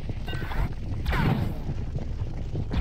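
A burst of energy explodes with a loud pop.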